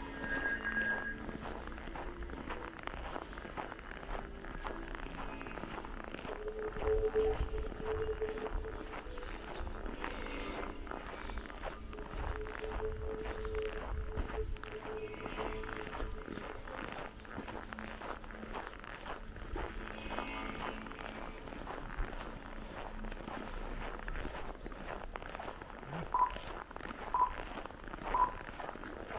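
Footsteps crunch steadily on packed snow.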